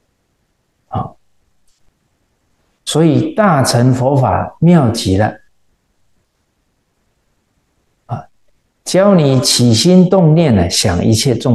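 A middle-aged man reads aloud calmly and slowly into a close microphone, with pauses.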